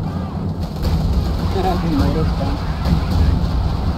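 Artillery shells explode with deep booms.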